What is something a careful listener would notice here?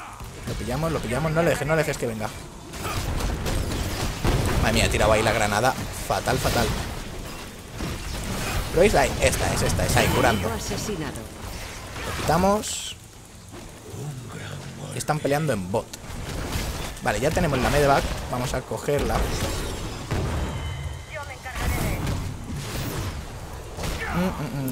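Magic blasts and weapon hits crackle in a game battle.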